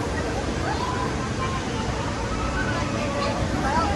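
A roller coaster train rumbles and roars along a steel track.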